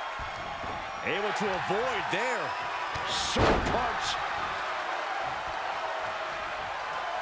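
Blows land with heavy thuds.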